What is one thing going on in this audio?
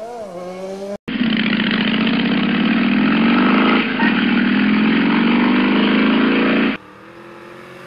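A motorcycle engine roars steadily while riding.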